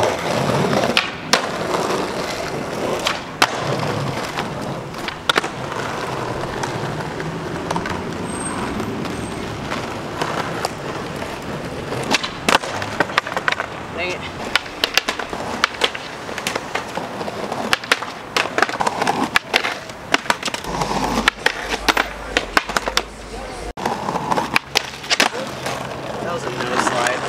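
Skateboard wheels roll and rumble over pavement.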